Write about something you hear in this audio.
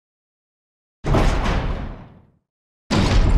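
A heavy metal door swings open with a loud groan.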